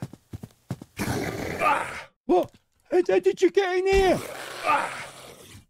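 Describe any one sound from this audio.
A monster roars loudly close by.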